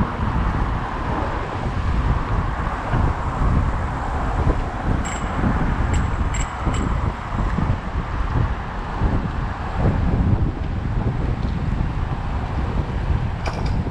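Car engines hum and tyres roll on the road nearby.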